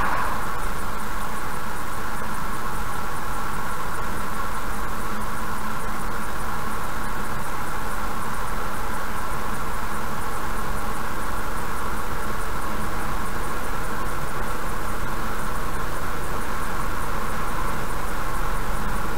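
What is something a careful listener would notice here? Tyres roll on the road with a steady rushing noise.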